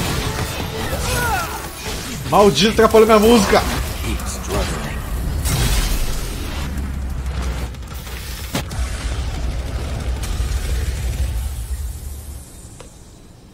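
Game combat sounds clash and whoosh with rumbling effects.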